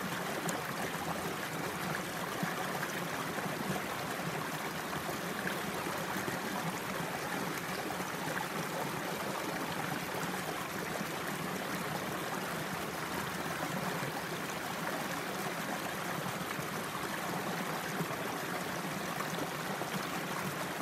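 A shallow stream gurgles and trickles steadily over rocks close by.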